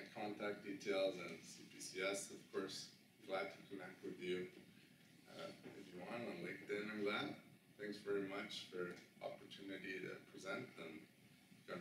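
A man speaks calmly in a room with a slight echo.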